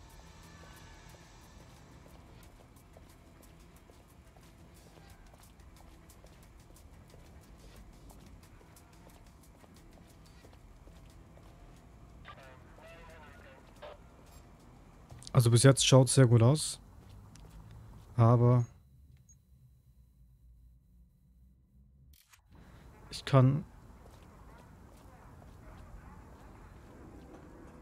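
Footsteps tap on wet pavement.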